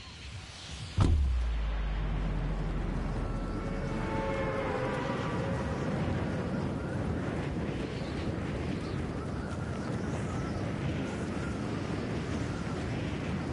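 Wind rushes loudly and steadily.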